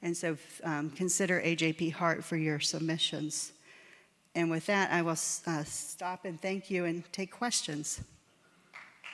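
A middle-aged woman speaks calmly through a microphone in a large hall.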